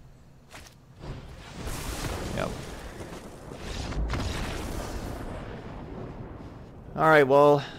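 A fiery spell whooshes and bursts with a rumbling roar.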